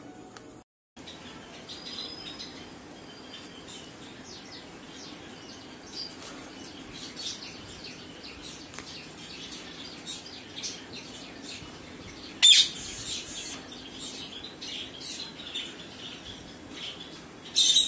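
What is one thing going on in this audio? Parakeets chirp and squeak in short calls.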